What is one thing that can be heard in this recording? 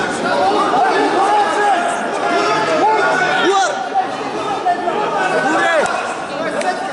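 A crowd of men shouts and cheers in a large echoing hall.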